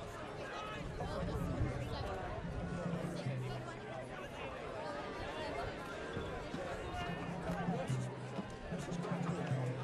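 A marching band plays brass notes across the field.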